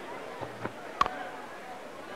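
A bat strikes a cricket ball with a sharp knock.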